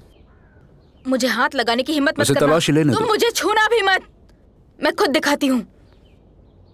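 A young woman speaks tensely nearby.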